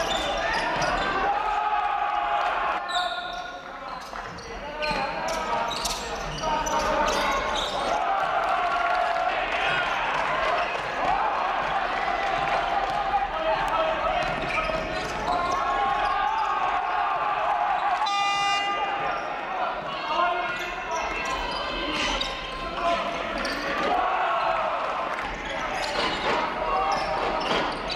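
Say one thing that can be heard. Young men shout and call out across the court.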